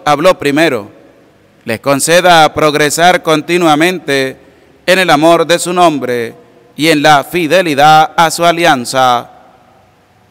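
A man speaks calmly into a microphone, heard through loudspeakers.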